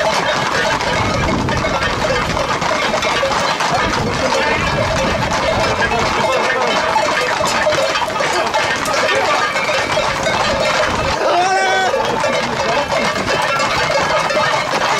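Horses' hooves clatter on a paved road.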